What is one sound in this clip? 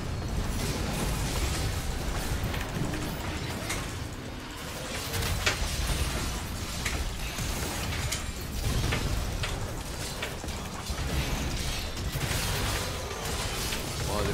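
Magic spells crackle and burst in quick bursts of game fighting.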